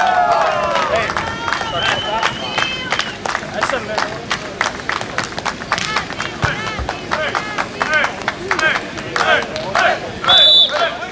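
A crowd of spectators cheers and claps.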